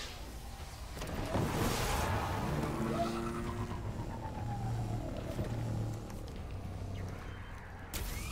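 A hovering motorbike engine hums and whines.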